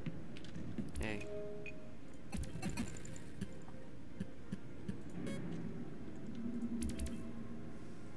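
Soft electronic menu beeps and clicks sound now and then.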